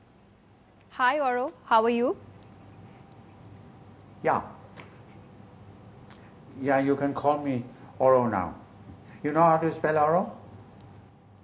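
An elderly man speaks with a deep voice over a remote link.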